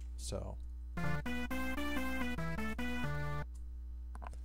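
A synthesizer plays a short run of quick notes.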